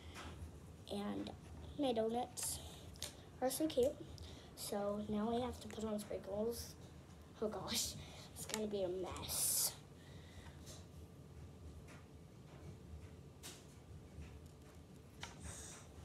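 Small plastic toys click on a table.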